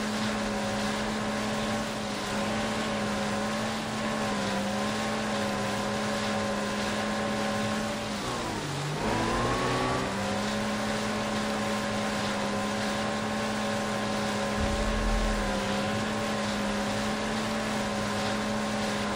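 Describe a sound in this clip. A jet ski engine drones steadily, dipping and rising in pitch.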